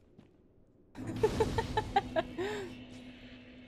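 A fire bursts into flame with a loud whoosh.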